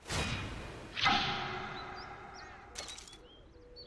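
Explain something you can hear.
A bright notification chime rings and fades.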